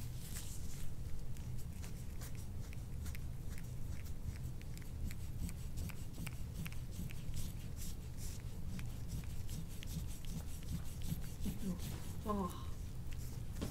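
A metal tool scrapes lightly along oiled skin.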